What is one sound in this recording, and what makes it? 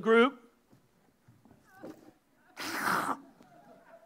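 A man falls onto a floor with a thud.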